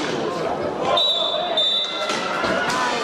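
A referee's whistle blows shortly.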